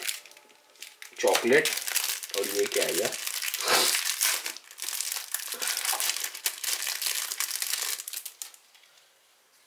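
Plastic wrapping crinkles and rustles as it is unwrapped.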